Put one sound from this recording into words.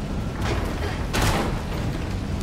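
A heavy wooden ladder topples and crashes down.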